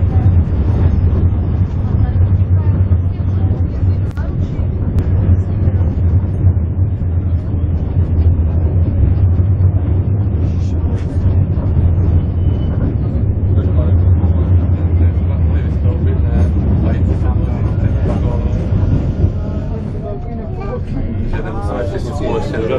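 Train wheels clatter and squeak on the rails.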